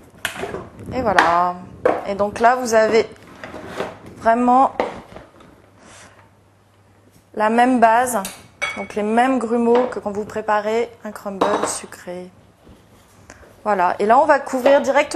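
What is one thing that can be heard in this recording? A woman speaks calmly into a clip-on microphone.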